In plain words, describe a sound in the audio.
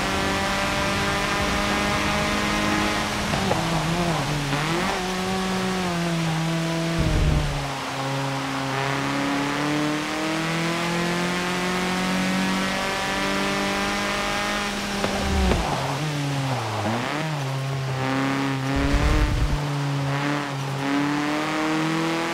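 A racing car engine roars steadily, rising in pitch and dropping sharply at each gear change.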